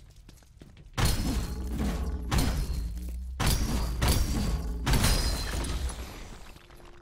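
Heavy punches smash into a crystal block with crashing bursts.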